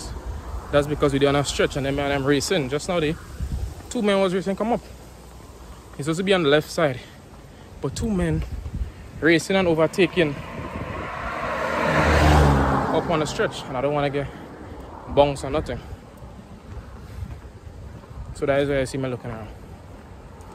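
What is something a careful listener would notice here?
A young man talks calmly and close up, in pauses, outdoors.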